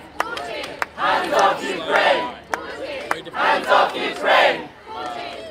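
A crowd of protesters chants loudly together outdoors.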